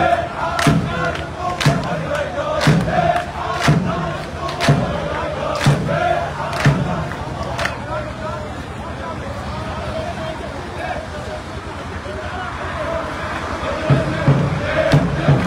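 A large crowd chants loudly outdoors.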